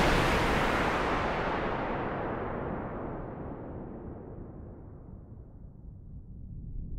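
A synthesizer plays a hissing noise sweep that slowly falls in pitch and fades.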